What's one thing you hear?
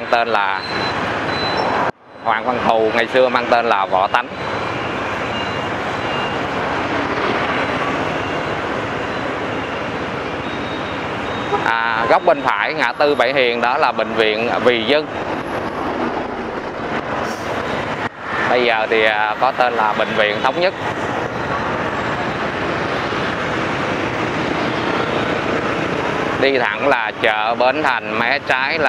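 Motorbike engines buzz as they pass close by.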